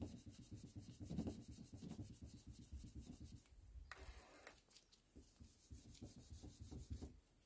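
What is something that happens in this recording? A sponge rubs back and forth over a car door with a soft, rhythmic scrubbing.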